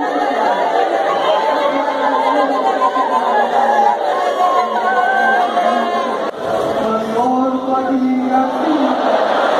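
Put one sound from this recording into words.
A large crowd sings together.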